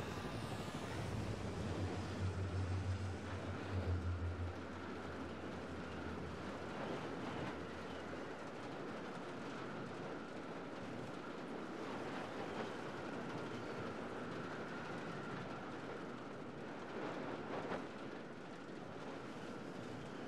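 A helicopter's rotor thrums steadily overhead.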